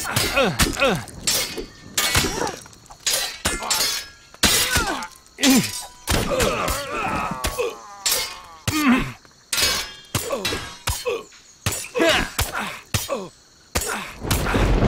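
Metal blades clash and strike in a sword fight.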